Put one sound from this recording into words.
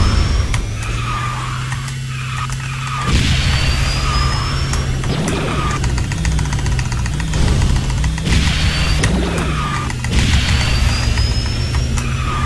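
A video game kart engine hums steadily at high speed.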